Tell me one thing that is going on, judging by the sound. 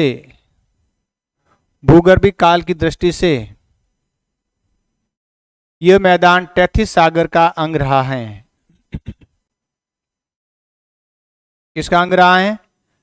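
A middle-aged man speaks calmly and clearly through a clip-on microphone, with pauses.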